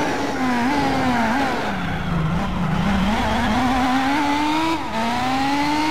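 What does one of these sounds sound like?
A racing car engine drops low as the car brakes hard for a corner, then climbs again.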